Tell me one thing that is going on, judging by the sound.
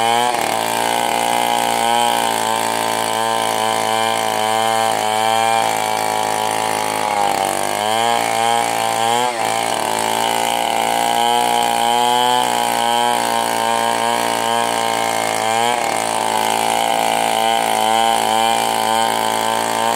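A chainsaw engine roars loudly and revs up and down while cutting through a log.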